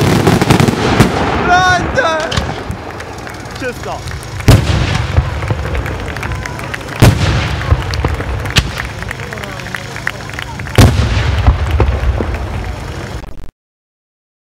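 Crackling firecrackers rattle continuously.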